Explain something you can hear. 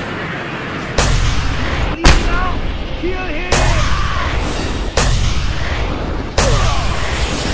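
Gunshots crack loudly in bursts.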